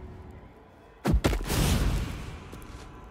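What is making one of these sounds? A staff strikes a body with a heavy thud.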